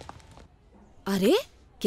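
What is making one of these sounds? A middle-aged woman speaks sharply.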